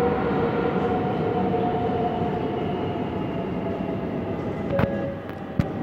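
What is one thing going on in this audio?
Train brakes whine steadily.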